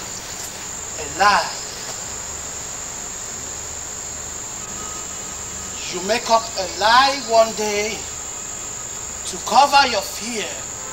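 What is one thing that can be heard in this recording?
A man speaks slowly and with feeling, close by.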